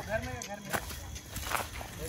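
Footsteps crunch on dry dirt close by.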